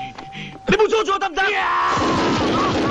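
A young man shouts angrily up close.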